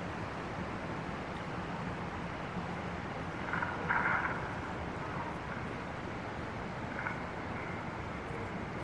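Footsteps tap on paved ground outdoors.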